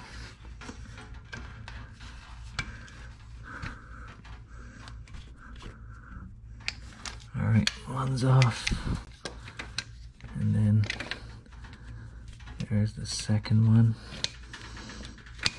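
Pliers click and scrape against metal engine parts.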